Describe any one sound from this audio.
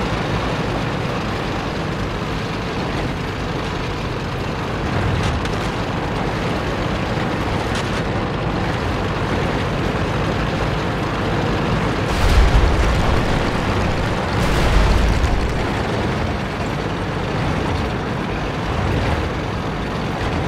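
A tank engine rumbles as the tank drives.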